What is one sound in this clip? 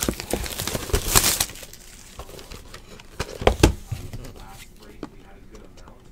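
Card packs crinkle as they are torn open.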